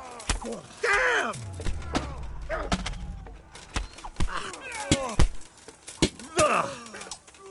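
Men shout and grunt with effort as they fight nearby.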